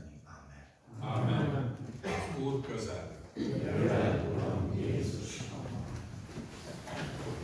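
A man speaks into a microphone through loudspeakers in an echoing hall.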